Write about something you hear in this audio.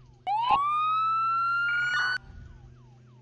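A siren winds up and rises in pitch.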